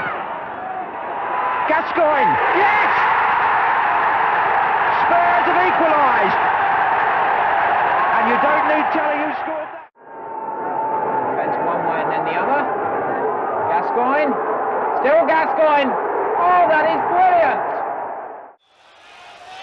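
A large stadium crowd roars and cheers loudly.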